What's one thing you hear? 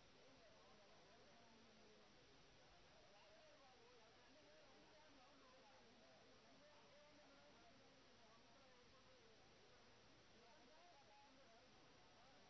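A crowd of men and women chatters and murmurs indoors.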